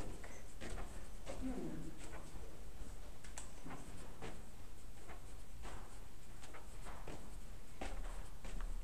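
Footsteps walk steadily along a hard floor in an echoing hallway.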